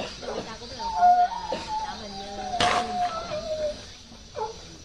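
A small dog whimpers softly.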